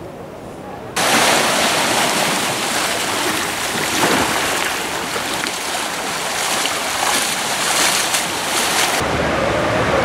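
Kayak paddles dip into water.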